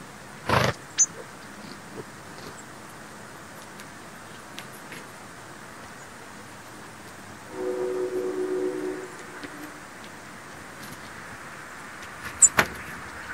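Small birds chirp in short, high notes.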